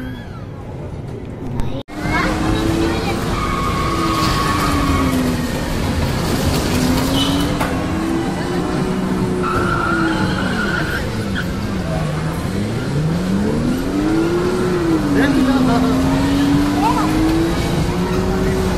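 A busy arcade hall hums with steady background noise.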